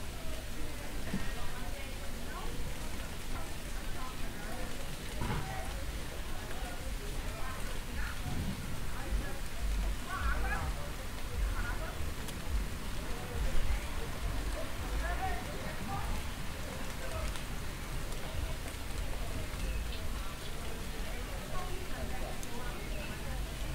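Several people talk outdoors on a street.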